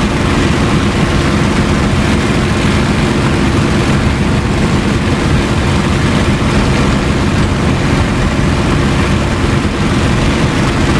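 Wind rushes past the cockpit.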